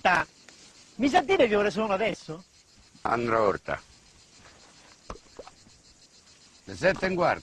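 Another man speaks in a relaxed voice.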